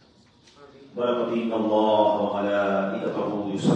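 A man chants a prayer in a long, drawn-out voice through a microphone.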